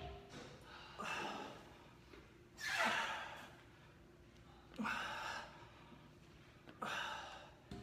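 A young man breathes out hard with each lift, close by.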